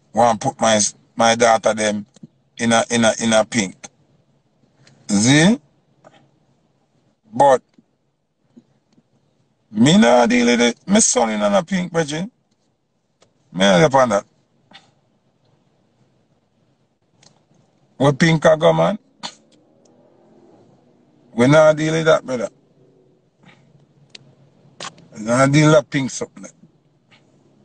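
A young man speaks calmly and close to a phone microphone, in short bursts with pauses.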